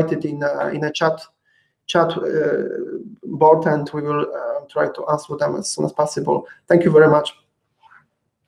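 A young man speaks calmly through an online call microphone.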